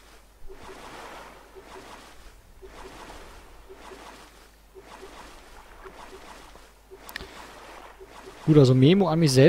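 A paddle splashes rhythmically through calm water.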